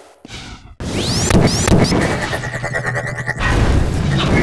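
An energy ball whooshes and crackles as it flies.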